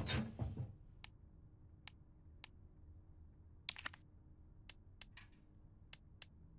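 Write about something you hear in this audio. Soft interface clicks sound at intervals.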